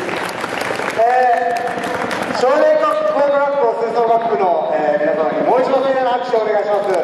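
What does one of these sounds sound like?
A brass band plays a slow chorale in a large echoing hall.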